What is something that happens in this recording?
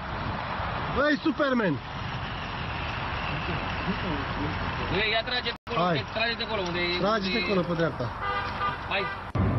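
A man talks outdoors close by.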